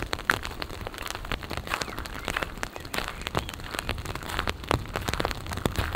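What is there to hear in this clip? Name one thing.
Water laps gently against a stone quay.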